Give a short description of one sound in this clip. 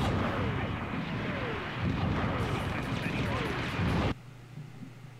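Gunfire and explosions rumble loudly and constantly.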